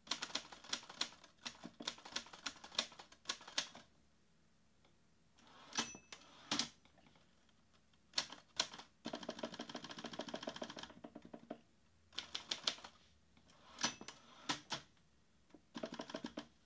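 Fingers type quickly on a laptop keyboard, in bursts with short pauses.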